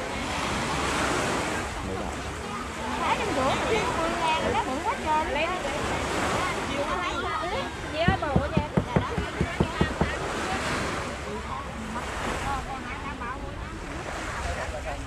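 Several women chat with animation close by.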